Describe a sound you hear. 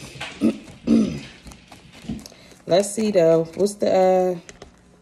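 Paper banknotes rustle and flick as they are counted.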